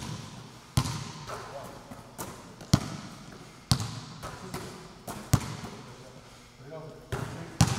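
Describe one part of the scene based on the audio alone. Basketballs clang off a metal rim.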